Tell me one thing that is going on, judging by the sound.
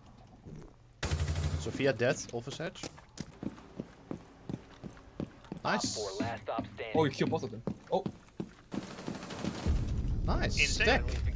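Rapid gunshots fire in bursts.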